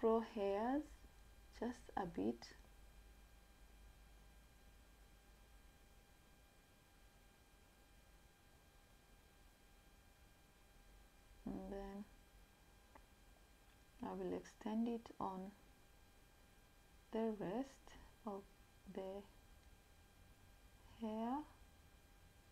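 A young woman speaks calmly and close by, in short bursts with pauses.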